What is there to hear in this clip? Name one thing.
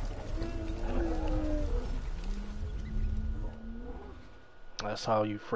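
A large creature growls low.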